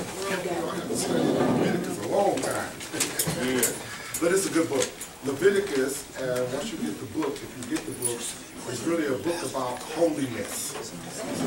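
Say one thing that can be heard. A man speaks to a group, heard from across a room.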